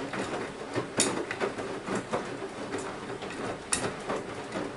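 Something hard in the laundry clunks against a washing machine drum now and then.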